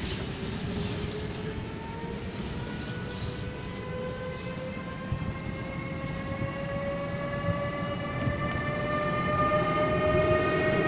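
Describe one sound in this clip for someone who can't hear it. An electric locomotive's motors whine, rising slowly in pitch.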